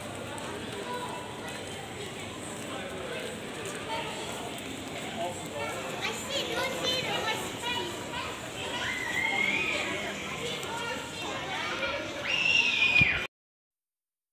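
Footsteps shuffle on a paved walkway.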